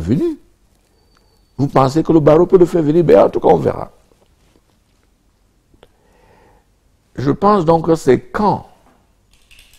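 An elderly man speaks calmly and closely into a microphone, in short bursts with pauses.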